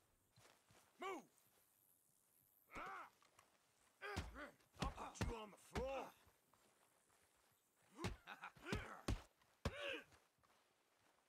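A man grunts and shouts in short bursts.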